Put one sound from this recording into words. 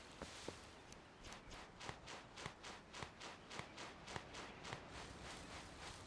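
Rapid soft scuffing sounds come in quick succession.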